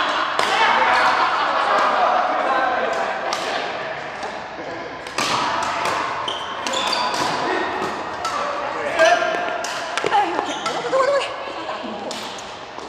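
Rackets strike a shuttlecock with sharp pops in an echoing hall.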